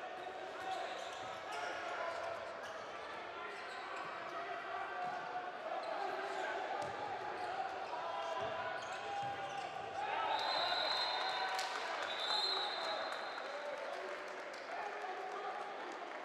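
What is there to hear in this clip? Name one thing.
A handball bounces on a hard floor.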